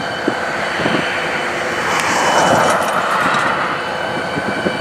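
A pickup truck drives past with a rushing sound.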